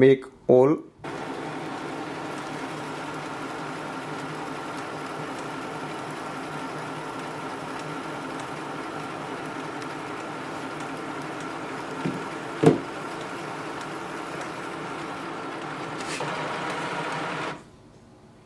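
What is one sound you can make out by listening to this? A small printer whirs steadily as it feeds and prints a page.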